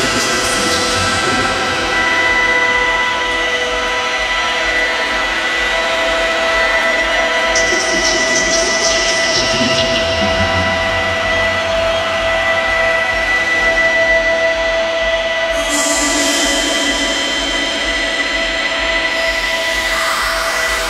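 Loud electronic dance music with a steady beat plays from big speakers in a large echoing hall.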